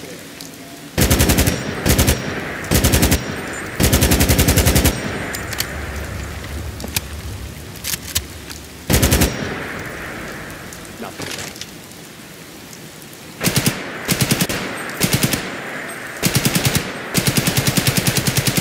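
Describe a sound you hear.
A rifle fires rapid bursts of automatic gunfire.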